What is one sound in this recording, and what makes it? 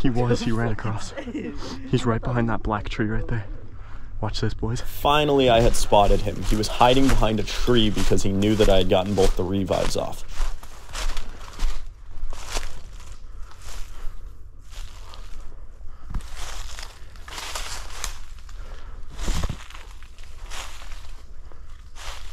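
Footsteps crunch through dry leaves and brush.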